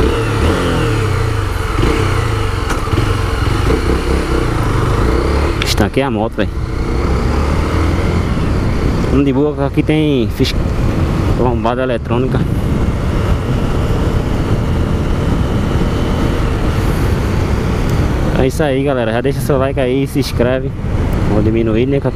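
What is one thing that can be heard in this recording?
A single-cylinder motorcycle engine runs as the bike rides along a street.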